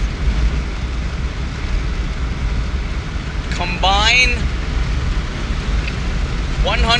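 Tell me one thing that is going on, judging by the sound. A car engine and road noise rumble steadily from inside a moving car.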